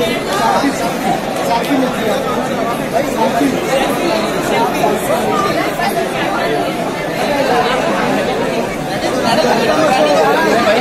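A dense crowd of young men and women chatter and shout all around, close by.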